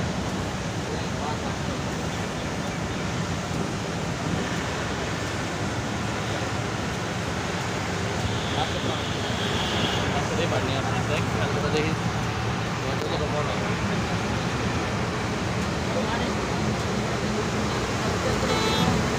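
Traffic rushes past on a wet road with a steady hiss of tyres.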